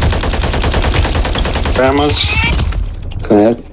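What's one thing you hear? A sniper rifle fires with a loud blast.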